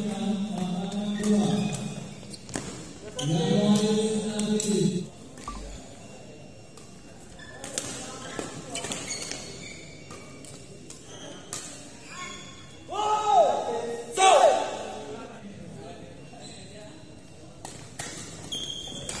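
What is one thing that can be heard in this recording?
Shuttlecocks are struck sharply with rackets in a large echoing hall.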